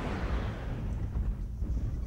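A shot explodes against a walking machine in the distance.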